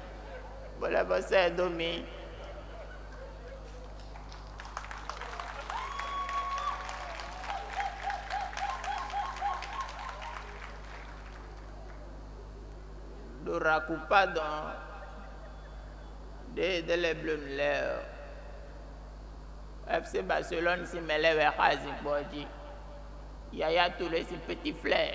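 A young man speaks loudly and dramatically in short bursts.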